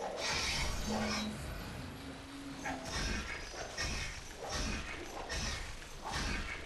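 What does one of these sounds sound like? Heavy blows and slashes land again and again in a loud fight.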